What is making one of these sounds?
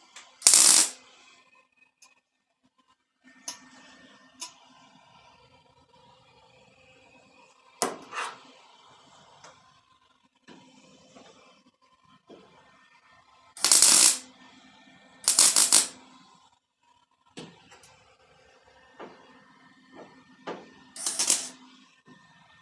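An electric welding arc crackles and hisses in short bursts.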